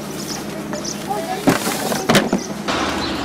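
A plastic crate knocks and rattles as it is tipped.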